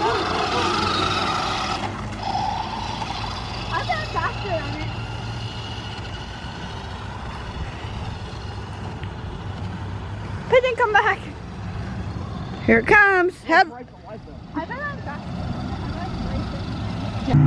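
A toy car's small electric motor whirs as it drives over pavement.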